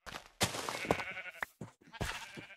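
Blocks crunch and crumble as they break.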